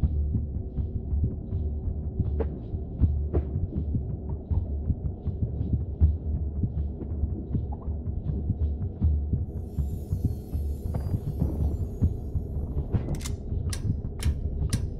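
Low rumbling music with soft ticking beats plays steadily.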